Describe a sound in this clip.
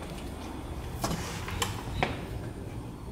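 A key clicks and turns in a door lock.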